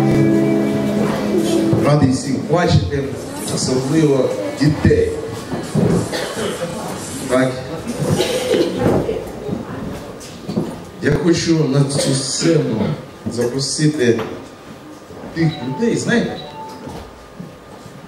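A man speaks with animation into a microphone, heard through loudspeakers in an echoing hall.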